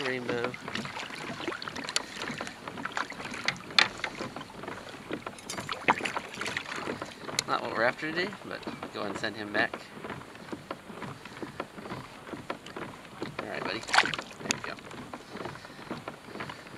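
A fishing reel clicks as line is reeled in.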